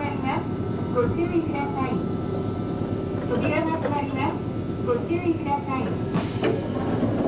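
A man calls out over the train's rumble.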